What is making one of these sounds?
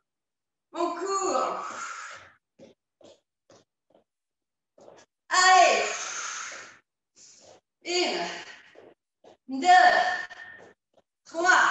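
Feet thud lightly on a hard floor as a person jogs in place.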